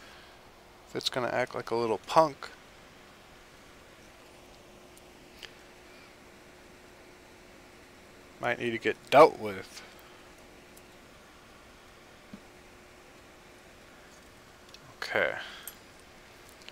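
A young man speaks briefly and calmly into a nearby microphone.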